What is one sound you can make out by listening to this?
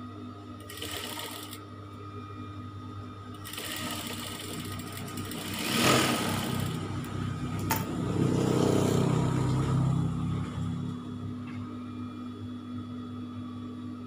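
An electric sewing machine hums steadily as it stitches fabric.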